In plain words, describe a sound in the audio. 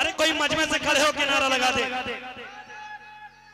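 A man sings loudly through a loudspeaker in an echoing hall.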